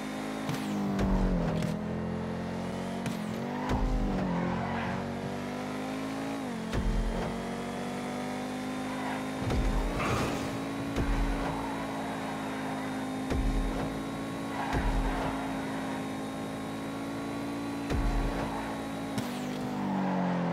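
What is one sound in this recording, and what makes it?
A sports car engine roars steadily, rising and dropping in pitch as the car shifts gears.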